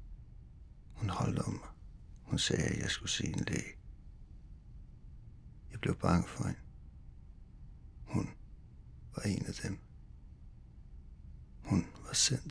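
A young man speaks quietly in short phrases nearby.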